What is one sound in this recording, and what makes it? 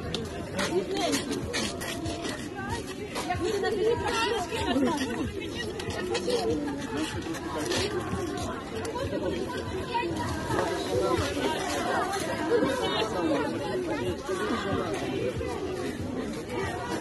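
A crowd of men and women talk and call out excitedly close by, outdoors.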